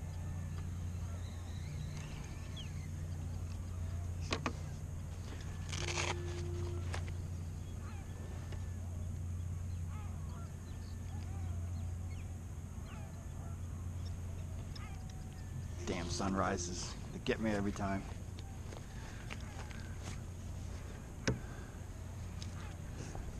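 Water laps softly against a kayak hull.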